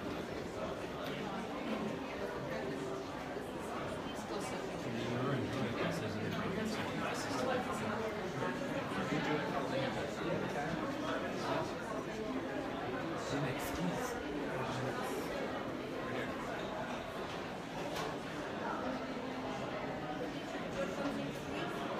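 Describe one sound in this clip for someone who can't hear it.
Several men talk and murmur nearby, all at once.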